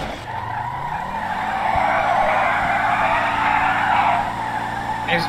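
Tyres screech while a car skids.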